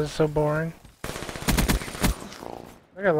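A rapid burst of gunfire rings out.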